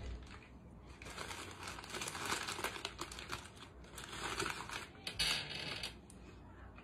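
A paper bag rustles and crinkles.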